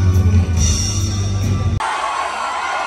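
Loud music with heavy bass plays over loudspeakers.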